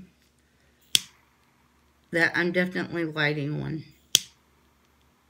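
A lighter clicks.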